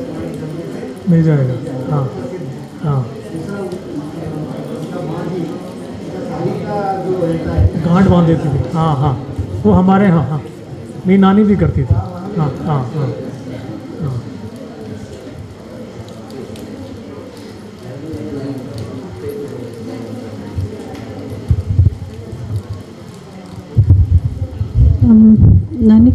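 A middle-aged man speaks with animation into a microphone in an echoing room.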